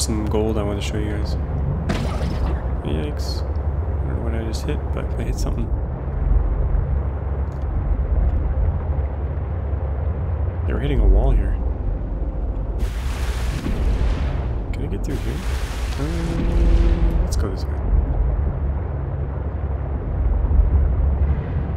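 A low, steady underwater rumble goes on throughout.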